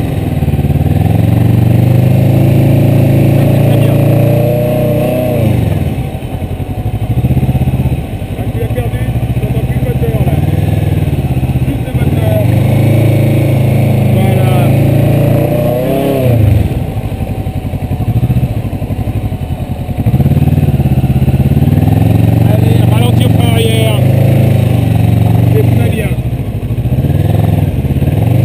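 A motorcycle engine revs up and down as the motorcycle is ridden at low speed.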